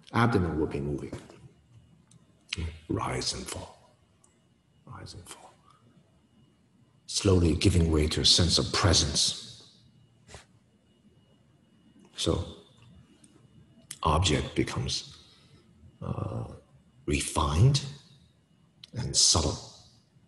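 A man speaks calmly and clearly into a nearby microphone, with pauses between phrases.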